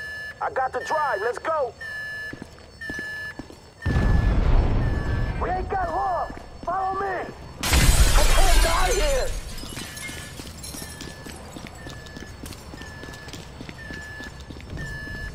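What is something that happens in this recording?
An alarm beeps at even intervals.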